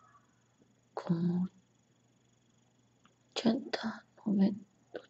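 A young woman speaks softly in short bursts close by.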